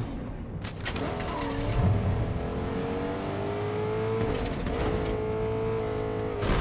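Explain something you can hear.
A pickup truck's engine revs and climbs in pitch as it drives.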